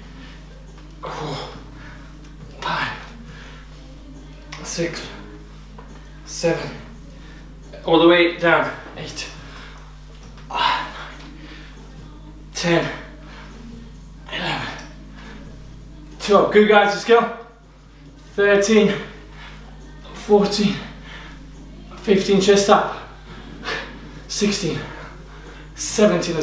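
A young man breathes out sharply in regular bursts.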